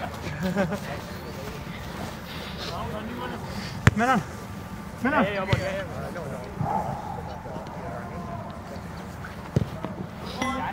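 Young men shout to each other outdoors at a distance.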